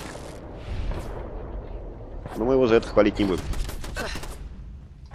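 A machine-gun turret fires rapid bursts.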